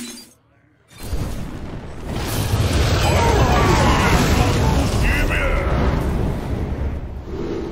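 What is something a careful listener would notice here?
A fiery blast roars and rumbles loudly, then fades.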